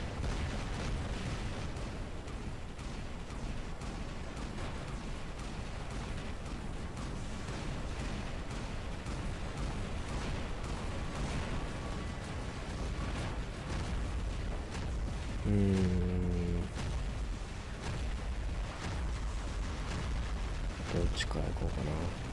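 A giant robot stomps along with heavy, rumbling footsteps.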